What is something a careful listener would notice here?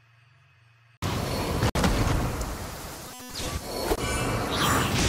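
Sword slashes whoosh and crackle with bursts of magic.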